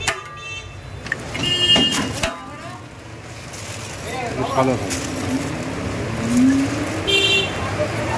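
Foil crinkles and rustles.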